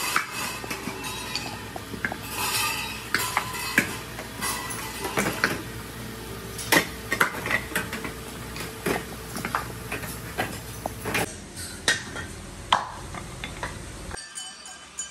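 Hard plastic wheels knock and clatter together as they are handled.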